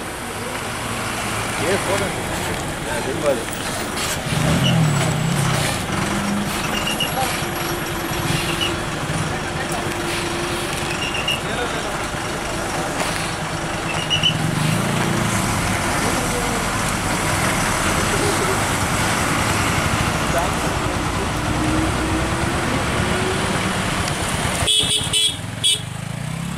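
A bus engine rumbles and labours as the bus turns slowly on a steep bend nearby.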